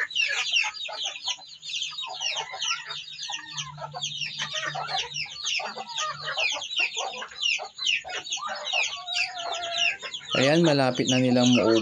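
Young birds peep and chirp busily all around.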